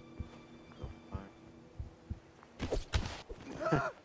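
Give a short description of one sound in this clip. A man is shoved over a railing with a heavy thud.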